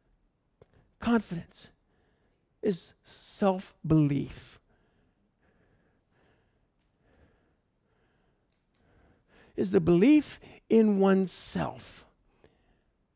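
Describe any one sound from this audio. A man speaks through a microphone, calmly and in bursts with pauses.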